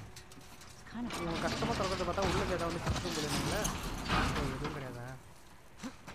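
A metal roll-up door rattles open.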